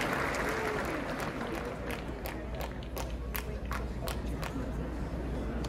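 A crowd claps hands.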